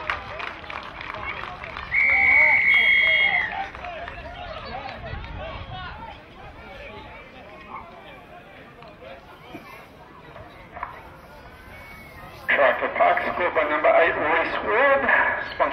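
Young players shout and cheer on an open field.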